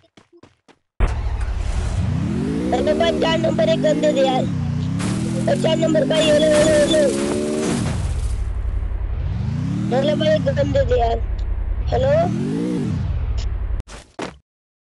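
A car engine revs up and down as the car drives.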